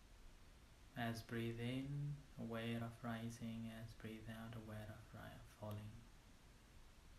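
A man speaks calmly and slowly into a close microphone.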